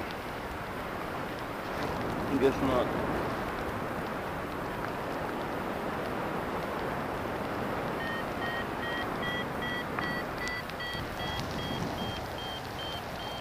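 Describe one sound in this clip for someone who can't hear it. Wind rushes steadily past, loud and close, outdoors.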